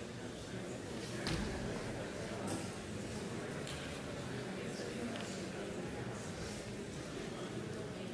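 A chair scrapes and knocks on a stage floor.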